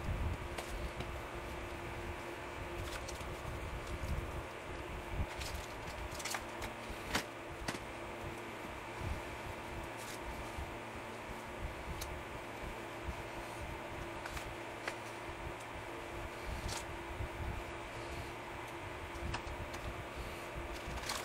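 Plastic pieces clatter as they are set down on glass.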